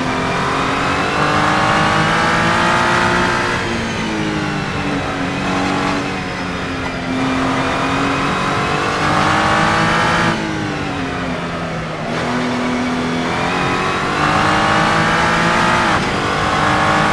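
A race car engine roars loudly, rising and falling in pitch as it shifts gears.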